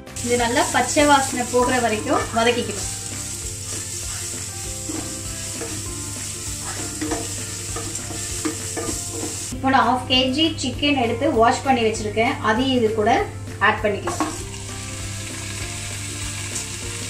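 Onions sizzle in a hot pan.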